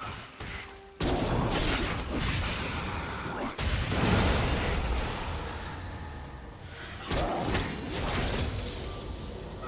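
Game spell effects and weapon hits crash and clash in a busy fight.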